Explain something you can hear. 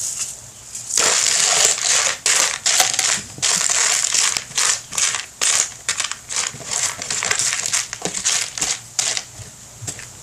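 Loose soil rustles and scrapes against a plastic tub.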